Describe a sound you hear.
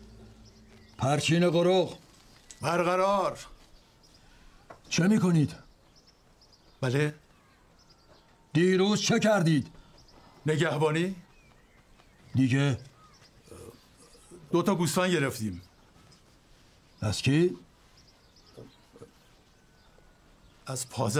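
A man speaks in short, halting phrases close by, with long pauses between.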